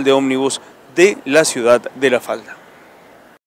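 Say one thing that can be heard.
A man speaks steadily into a microphone, reporting close up.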